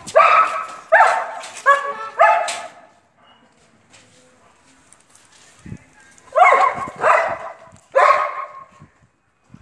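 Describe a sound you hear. A dog barks loudly in short bursts.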